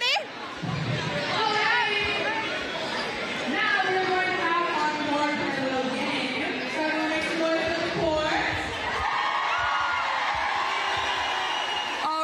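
A crowd of students cheers and shouts.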